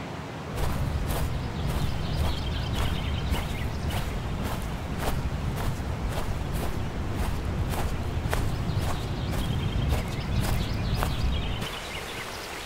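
Footsteps swish across grass.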